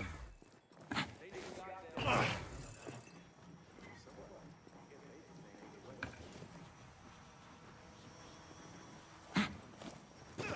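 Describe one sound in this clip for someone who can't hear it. Boots thump heavily as a person lands after jumping down.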